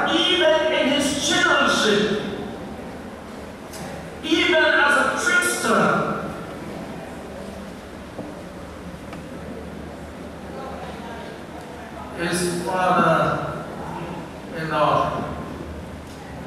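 An elderly man speaks slowly and with emphasis through a microphone and loudspeakers in a large echoing room.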